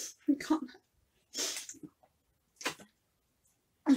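A woman sips from a bottle and swallows.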